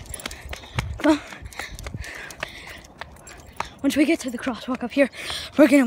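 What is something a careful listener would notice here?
A young woman speaks close by in short bursts.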